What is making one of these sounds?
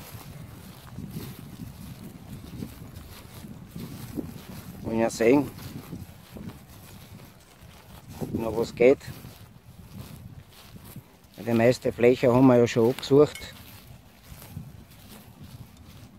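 Footsteps swish through long grass.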